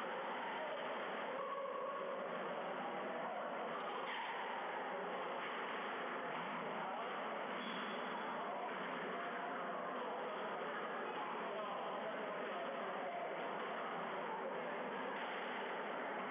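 A squash ball smacks off a racket and the walls, echoing in a hard-walled court.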